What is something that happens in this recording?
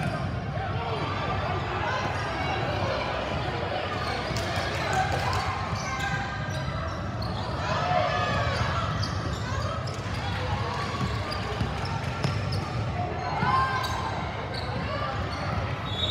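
A crowd of spectators calls out and cheers in a large echoing gym.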